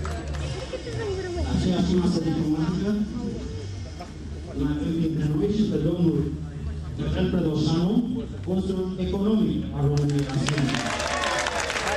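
A man sings into a microphone, heard over loudspeakers in a large hall.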